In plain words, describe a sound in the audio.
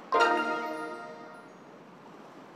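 A bright musical chime rings out and fades.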